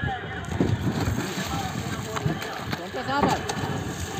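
A fish splashes and thrashes in the water beside a boat.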